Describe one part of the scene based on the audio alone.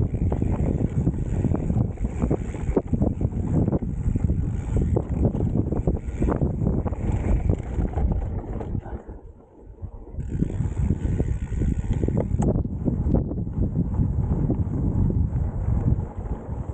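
Mountain bike tyres crunch and rattle over a dry dirt trail.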